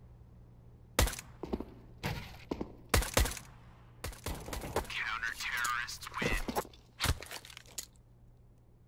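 Silenced gunshots fire in quick bursts.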